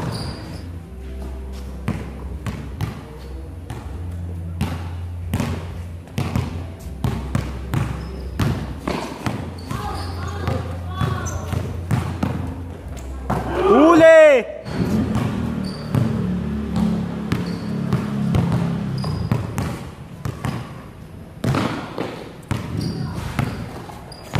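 A basketball bounces repeatedly on a hard outdoor court.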